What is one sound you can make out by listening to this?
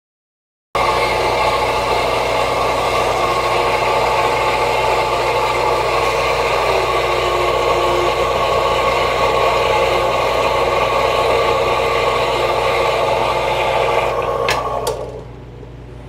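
A machine motor hums steadily, then winds down.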